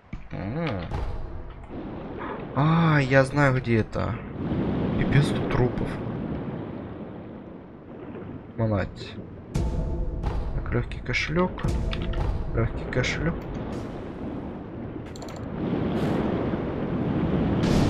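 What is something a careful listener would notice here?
Water rushes and murmurs in a low, steady underwater rumble.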